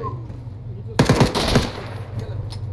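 A rifle fires a rapid burst of shots close by.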